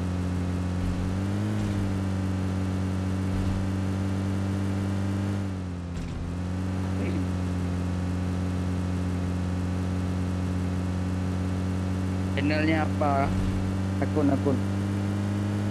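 A vehicle engine hums steadily as it drives over rough ground.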